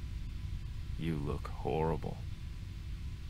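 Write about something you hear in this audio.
A man speaks quietly and tensely, close by.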